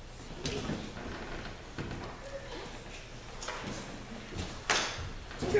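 A young girl speaks on a stage.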